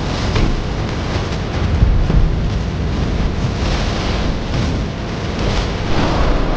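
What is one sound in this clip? Deep rumbling explosions boom.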